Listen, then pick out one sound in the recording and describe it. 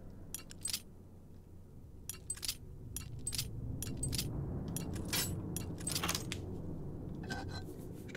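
Metal lock pins click softly as a lock is picked.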